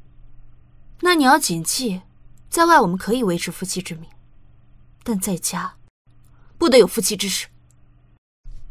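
A young woman speaks with annoyance nearby.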